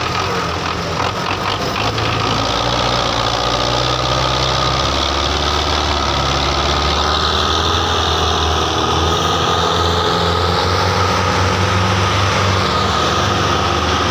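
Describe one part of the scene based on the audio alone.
A tractor diesel engine roars and labours loudly, pulling a heavy load.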